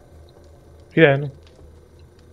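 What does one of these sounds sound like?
A man's voice makes a short, loud exclamation close to a microphone.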